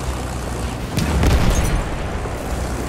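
An explosion bursts loudly nearby.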